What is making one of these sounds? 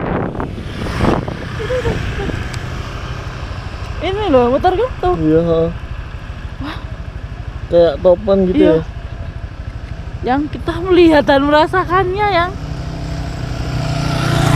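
A motorcycle engine idles with a low rumble.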